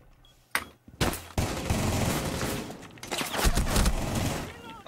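Rapid gunfire rattles in short bursts.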